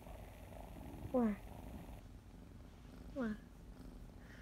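A kitten meows briefly.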